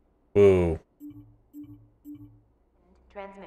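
Short electronic beeps sound as a menu is browsed.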